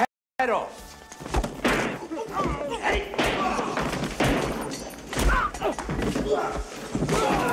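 Punches land with heavy thuds during a fight.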